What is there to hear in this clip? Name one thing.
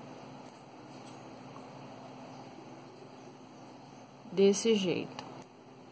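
Plastic beads click softly against each other.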